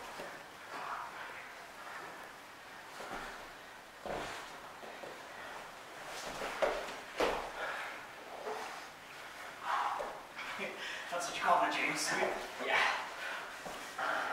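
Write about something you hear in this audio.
Bodies thump and scuff on a padded mat.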